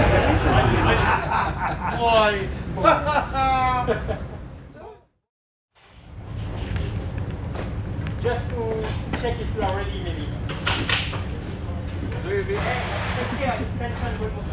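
A man talks.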